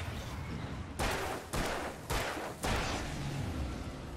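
Loud explosive blasts boom in quick succession.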